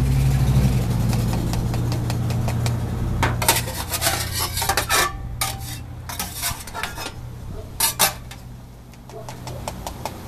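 Corn kernels pour into a paper cup.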